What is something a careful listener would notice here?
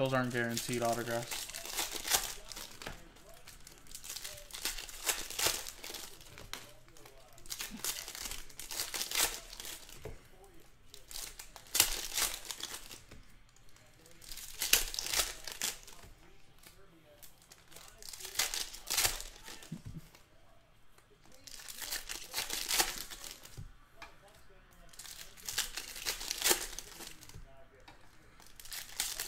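Foil wrappers crinkle and rustle as packs are torn open.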